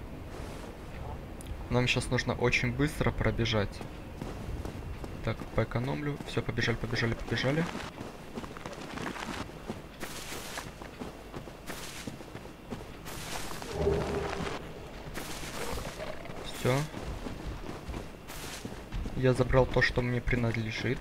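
Footsteps of a figure in armour run over stone and grass.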